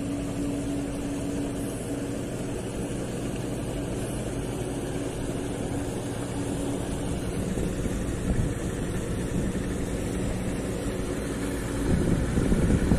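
A boat engine drones steadily nearby.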